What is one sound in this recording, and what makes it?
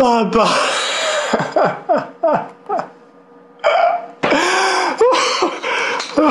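A young man groans and wails loudly and theatrically, close by.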